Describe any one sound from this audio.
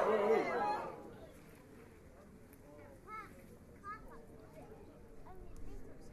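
A man speaks calmly to a group nearby.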